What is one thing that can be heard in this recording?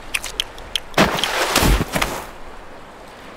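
A seal slides onto the ice with a quick whoosh.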